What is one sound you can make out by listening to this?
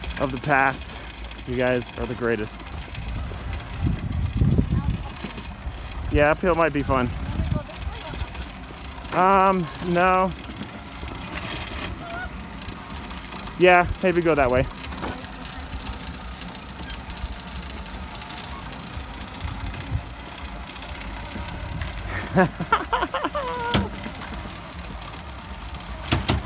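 Tyres roll and crunch over a dirt road.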